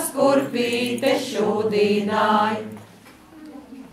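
A choir of women sings together.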